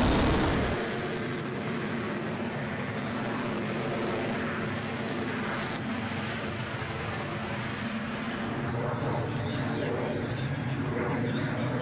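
A jet engine roars steadily as a plane races down a runway.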